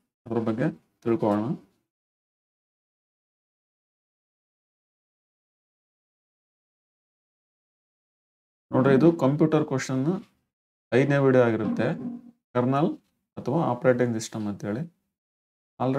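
A young man speaks calmly into a close microphone, pausing now and then.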